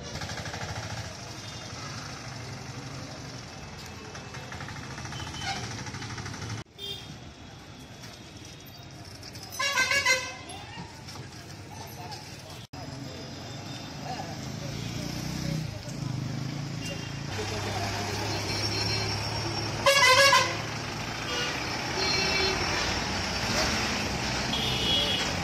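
Street traffic hums steadily outdoors.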